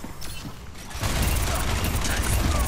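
Twin guns blast rapidly in a roar of gunfire.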